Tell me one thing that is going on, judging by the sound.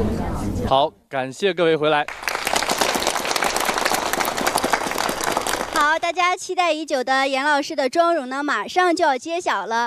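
A young woman speaks brightly into a microphone over loudspeakers.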